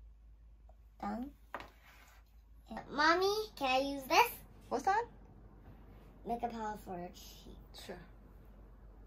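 A young girl speaks in a high voice, close by, with pauses.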